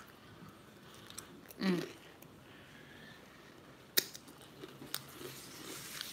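A young woman crunches on food while chewing.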